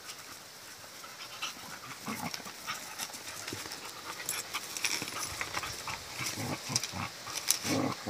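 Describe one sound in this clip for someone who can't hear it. Paws scuffle on grass and dirt.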